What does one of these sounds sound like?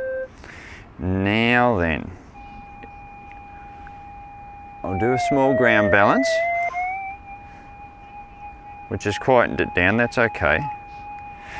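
A metal detector gives loud warbling signal tones in bursts.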